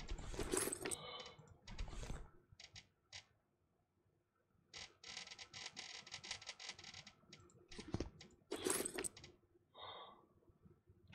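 Short interface clicks and chimes sound as items are moved around.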